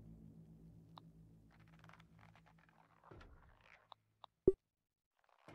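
Short electronic interface blips sound now and then.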